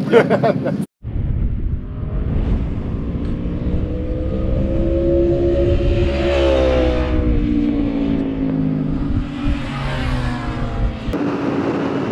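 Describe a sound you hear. A motorcycle engine roars past and fades away.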